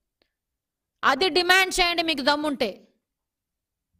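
A woman speaks clearly and firmly into a microphone.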